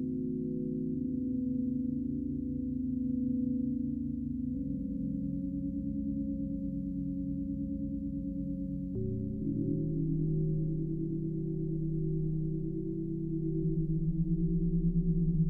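A low synthesizer tone pulses in a steady rhythm.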